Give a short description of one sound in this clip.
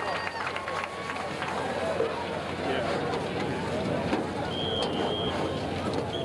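A marching band plays on the field.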